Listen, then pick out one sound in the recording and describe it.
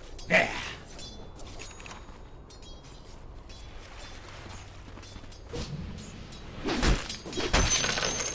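Weapons clash and strike in quick blows.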